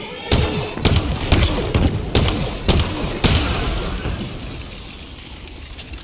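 An energy weapon fires in rapid bursts.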